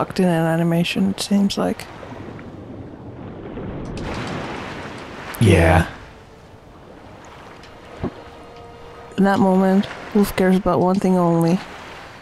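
Water splashes and sloshes as a swimmer strokes through it.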